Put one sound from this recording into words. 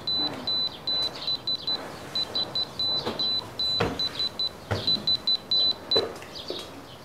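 An alarm clock beeps in quick bursts, then stops.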